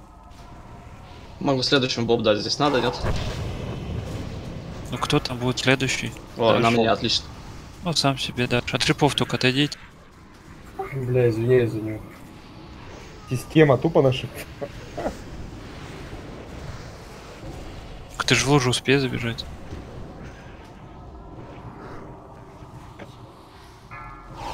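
Magic spells whoosh and crackle in a busy fight.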